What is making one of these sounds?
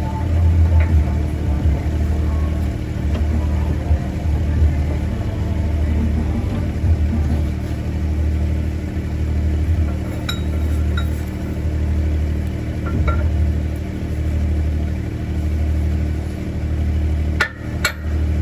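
A heavy machine hums with a low, steady, throbbing drone.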